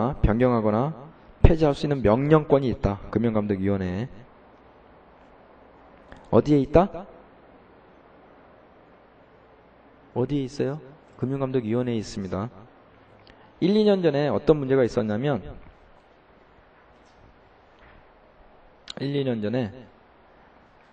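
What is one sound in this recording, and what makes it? A man speaks calmly into a microphone, in short bursts with pauses.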